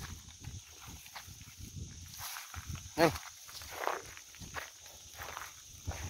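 Cattle hooves crunch on dry ground.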